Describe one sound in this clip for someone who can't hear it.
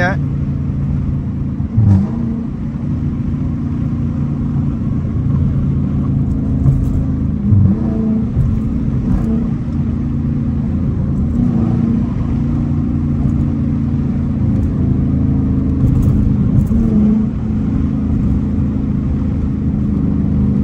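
A V8 muscle car engine roars from inside the cabin as the car accelerates.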